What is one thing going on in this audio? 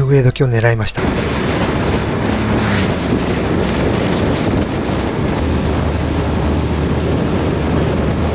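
Wind roars steadily past a moving motorcycle.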